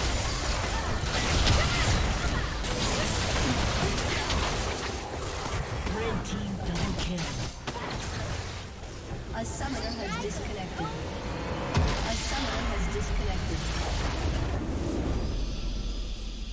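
Fantasy battle sound effects crackle and burst rapidly.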